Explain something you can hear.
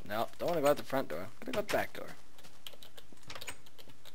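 A wooden door opens with a click.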